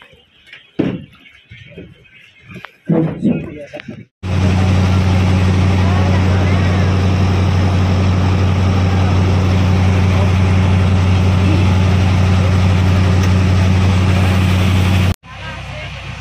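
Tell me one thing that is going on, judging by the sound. Water churns and splashes in the wake of a boat.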